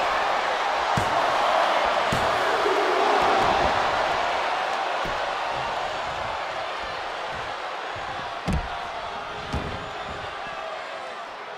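A large crowd cheers loudly in a big arena, slowly quietening.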